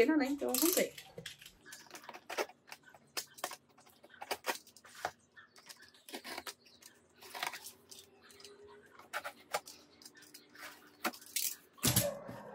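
A knife scrapes and clicks against tape on a cardboard box.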